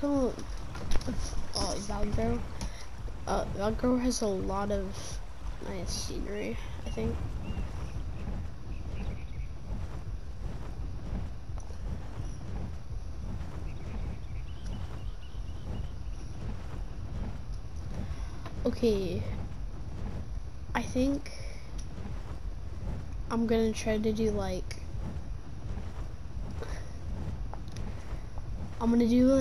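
A large bird beats its wings in flight.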